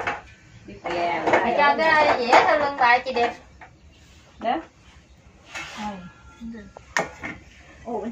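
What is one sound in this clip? Batter sizzles gently in hot pans.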